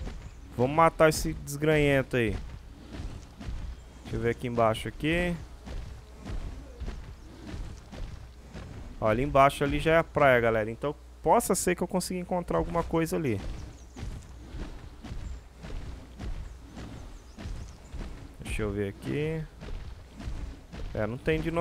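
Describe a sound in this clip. A large creature's heavy footsteps thud on grass.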